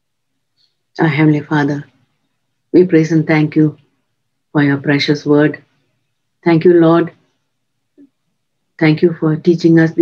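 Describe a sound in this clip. An elderly woman speaks slowly and calmly in short phrases over an online call.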